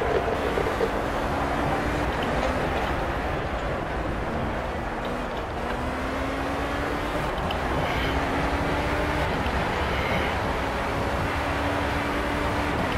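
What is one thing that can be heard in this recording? An open-wheel racing car engine screams as it accelerates and shifts up through the gears.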